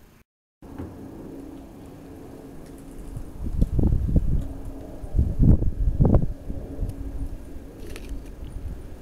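A cat purrs softly close by.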